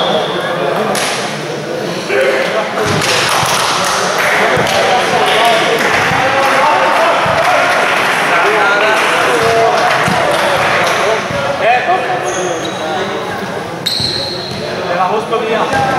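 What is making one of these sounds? Sneakers squeak on the court floor.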